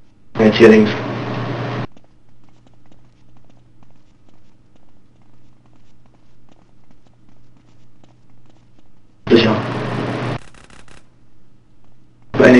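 Boots thud quickly on a hard floor.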